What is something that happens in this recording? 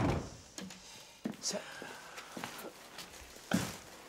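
A canvas sack rustles.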